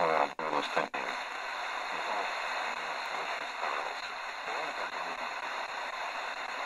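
Radio static hisses steadily.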